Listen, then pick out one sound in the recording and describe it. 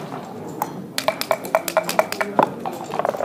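Dice rattle quickly in a shaken cup.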